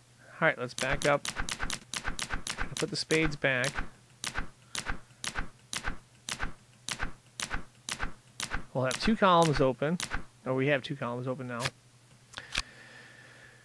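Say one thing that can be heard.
Playing cards snap down with quick, sharp clicks.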